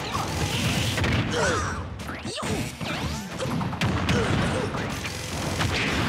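Game fighters land punches and kicks with sharp hits.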